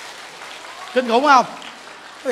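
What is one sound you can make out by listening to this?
A large crowd laughs and claps.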